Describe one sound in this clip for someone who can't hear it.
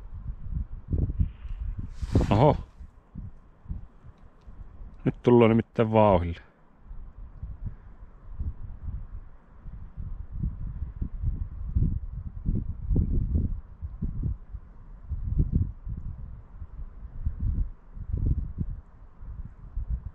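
Wind buffets outdoors in low, uneven gusts.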